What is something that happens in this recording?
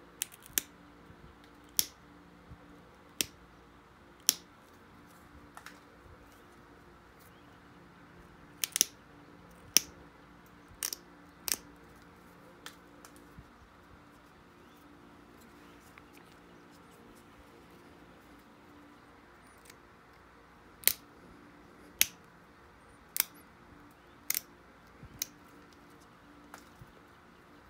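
A pointed tool presses flakes off a stone blade with sharp clicks and snaps.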